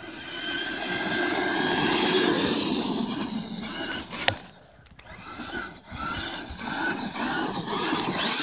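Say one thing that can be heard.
An electric radio-controlled monster truck's motor whines as it speeds up and slows.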